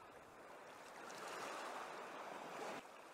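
Water splashes as people wade through shallow water.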